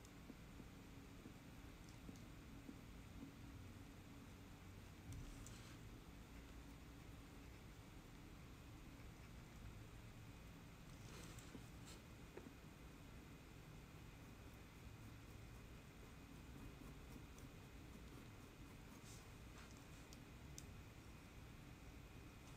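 A metal tool scrapes and scratches faintly against dry clay.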